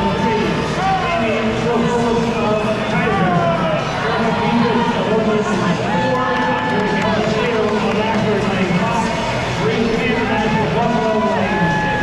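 Swimmers splash through the water.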